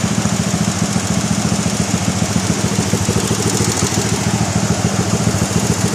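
A swollen river rushes and roars.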